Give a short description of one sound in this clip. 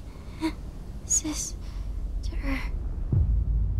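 A young woman speaks softly and haltingly.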